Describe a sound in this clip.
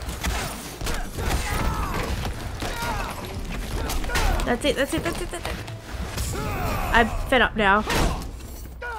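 Heavy punches and kicks land with loud thuds and metallic clangs.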